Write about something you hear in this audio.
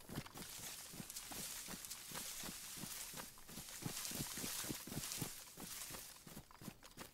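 Leafy branches rustle and swish against a body pushing through bushes.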